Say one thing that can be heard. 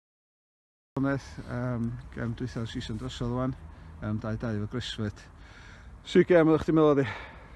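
A young man speaks calmly and close up.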